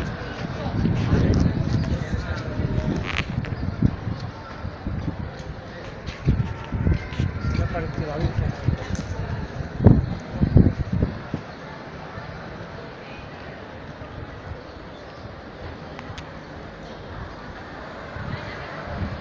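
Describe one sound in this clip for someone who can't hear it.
City traffic hums along a street.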